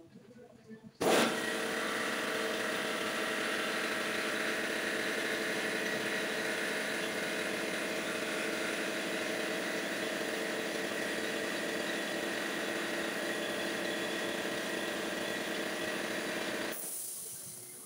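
A metal lathe whirs and grinds loudly and steadily, then stops.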